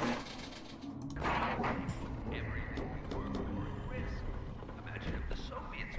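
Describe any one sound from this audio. Electricity crackles and buzzes softly.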